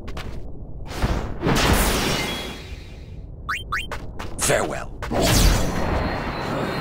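A sword slashes with sharp whooshing strikes.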